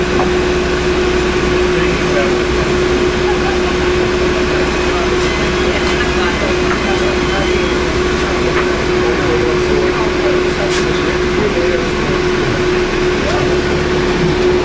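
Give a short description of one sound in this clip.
An aircraft engine hums steadily nearby.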